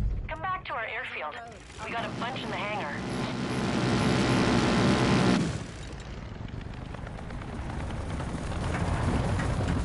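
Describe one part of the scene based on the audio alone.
A small propeller plane engine hums and revs.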